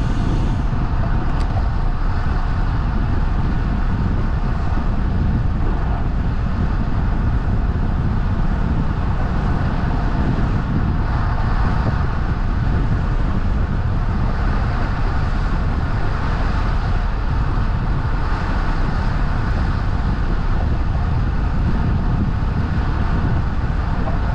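Tyres roll steadily on asphalt.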